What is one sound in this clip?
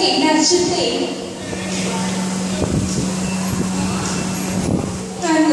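A woman speaks through a loudspeaker in a large echoing hall.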